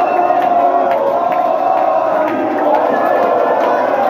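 A crowd of young people claps hands.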